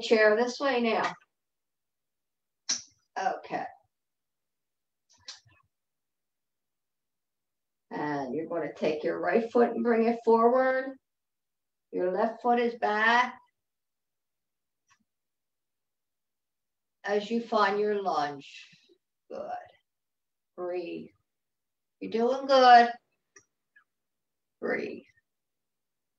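An older woman speaks calmly in short bursts, heard through an online call.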